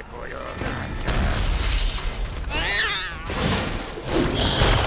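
Blows and magic blasts crash and burst in a fight.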